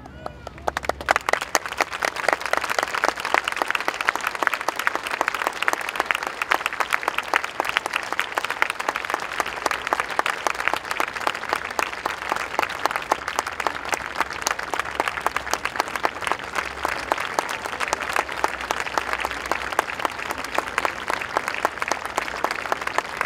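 Many people clap their hands outdoors.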